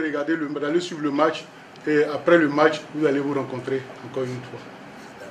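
An elderly man speaks calmly in a deep voice.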